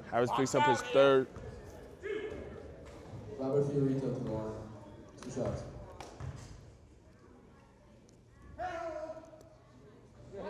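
Men's voices call out and talk nearby in an echoing gym.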